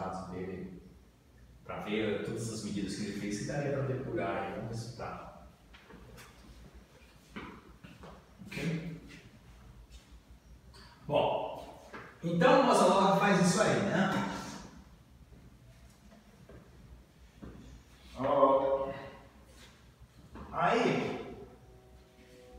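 A man speaks calmly and explains, in a room with some echo.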